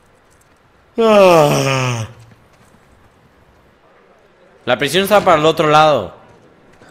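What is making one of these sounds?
A young man exclaims loudly into a close microphone.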